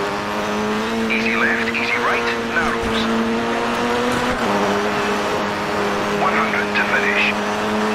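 A rally car engine roars steadily at high revs.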